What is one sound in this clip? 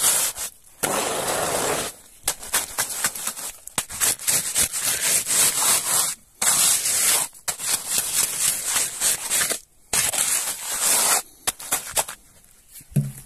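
A hand trowel scrapes and scoops gritty soil in sharp, repeated bursts.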